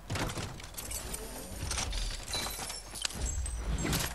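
A video game treasure chest creaks open with a chime.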